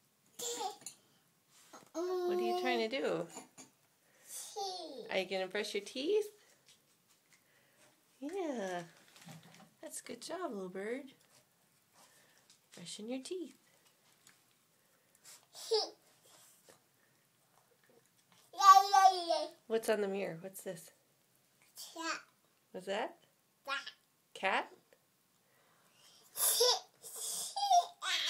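A toddler babbles and chatters up close.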